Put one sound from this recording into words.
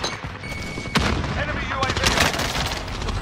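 A pistol fires several quick shots at close range.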